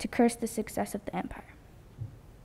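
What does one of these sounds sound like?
A girl speaks calmly into a microphone in an echoing hall.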